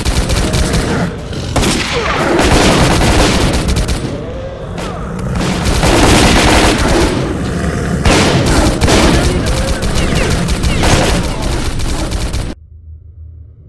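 Loud gunfire rattles in rapid bursts.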